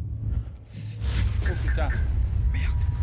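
A heavy metal door rumbles loudly as it slides open.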